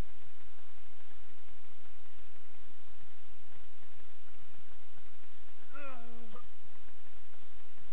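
Footsteps crunch through snow at a steady pace.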